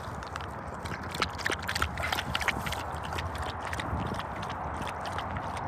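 A dog laps water quickly.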